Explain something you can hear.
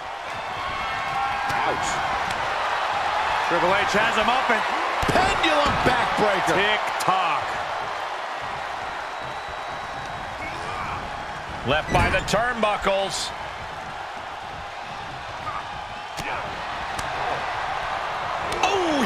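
A large arena crowd cheers and roars.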